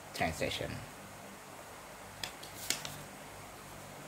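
A sheet of paper rustles briefly.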